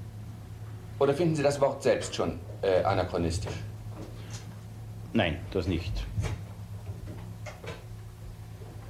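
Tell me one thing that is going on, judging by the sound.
A man speaks calmly into a microphone, heard close.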